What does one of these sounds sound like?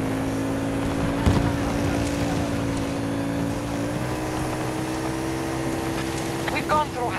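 A buggy engine drones steadily, shifting pitch as it climbs.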